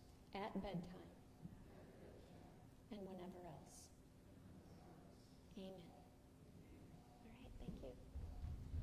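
A woman speaks softly in a large echoing room.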